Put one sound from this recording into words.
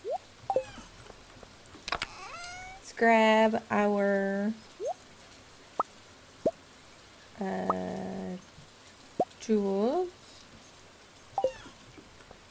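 Short electronic chimes and pops sound as game items are picked up and moved.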